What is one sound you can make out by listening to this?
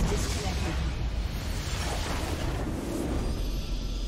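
Game battle effects crash and boom loudly.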